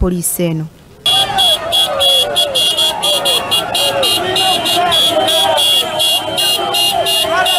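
A crowd cheers and chants outdoors.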